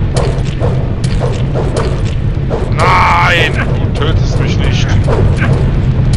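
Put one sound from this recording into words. A sword swishes through the air and clashes.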